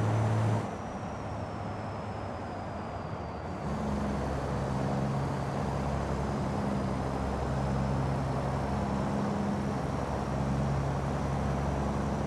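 A truck's diesel engine rumbles steadily, its pitch shifting as the gears change.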